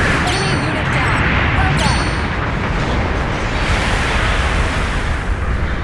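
A rushing roar of thrusters fills the air.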